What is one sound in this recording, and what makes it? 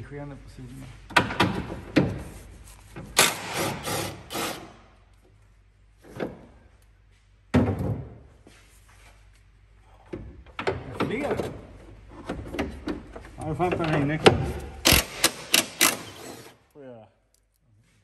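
A power drill whirs in short bursts against metal.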